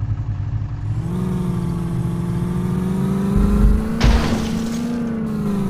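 A car engine hums and revs up.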